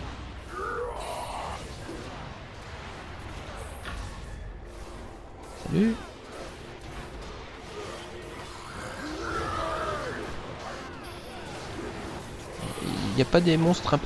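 Magic spells blast and crackle during a fight.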